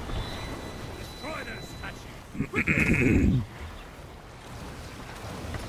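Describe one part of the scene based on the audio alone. Stormy waves crash and roar around a wooden ship.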